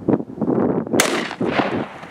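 A gun fires a sharp shot outdoors.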